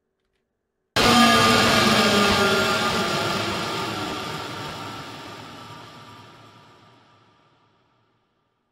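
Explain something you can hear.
A cymbal crashes and slowly rings out.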